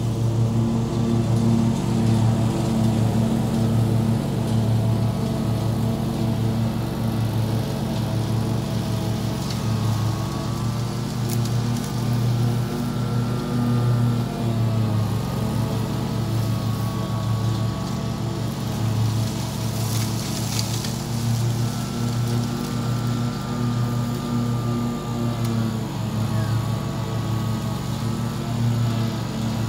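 A ride-on mower engine drones steadily nearby, its pitch rising and dipping as it turns.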